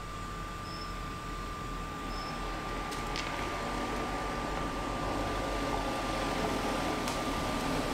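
A car engine hums as a car drives slowly closer, growing louder.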